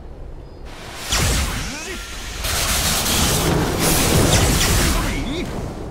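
A magic spell bursts with a loud whooshing crackle.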